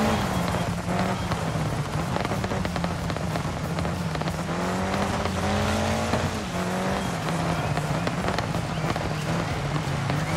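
A car engine roars and revs steadily.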